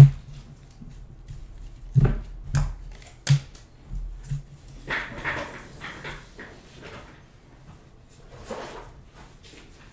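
Trading cards slide and flick against each other.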